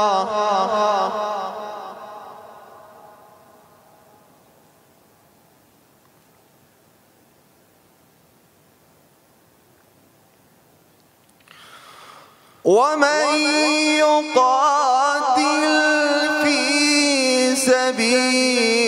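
A young man chants in a long, wavering melody through a microphone, with a lingering echo.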